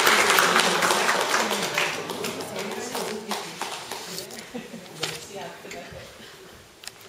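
Several women chatter nearby in a room with some echo.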